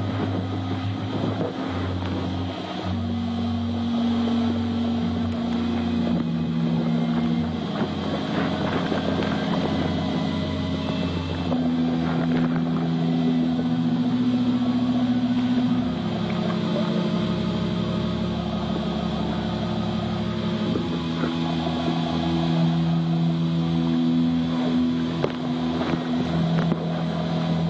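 A choir sings slow, long held notes, heard from a distance.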